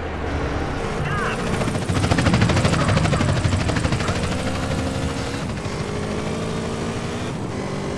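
A motorcycle engine roars and revs.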